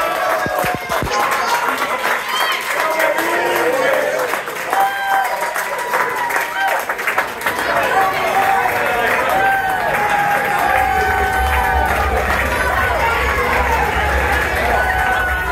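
A crowd of children and adults cheers and shouts close by.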